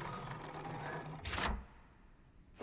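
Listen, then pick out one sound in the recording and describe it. A lever clicks into place.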